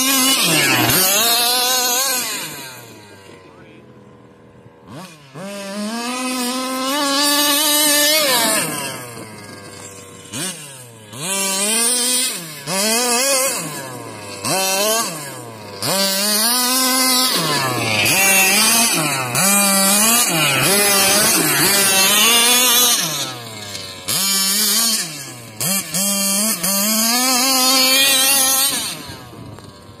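A small electric motor whines loudly, rising and falling in pitch as a toy car speeds up and slows down.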